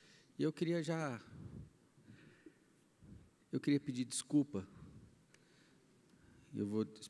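A man speaks through a microphone in a large hall, pausing between phrases.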